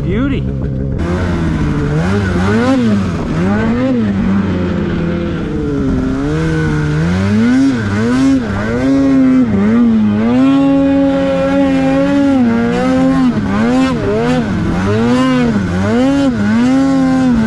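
Snow hisses and crunches under a snowmobile's track.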